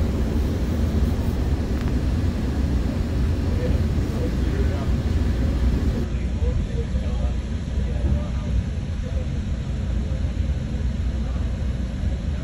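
A vehicle rumbles steadily as it drives along a road.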